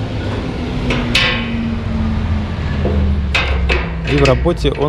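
A metal lever clanks and clicks.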